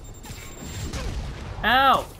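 An explosion booms with crackling debris.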